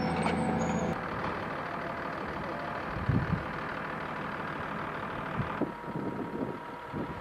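A tractor engine runs nearby.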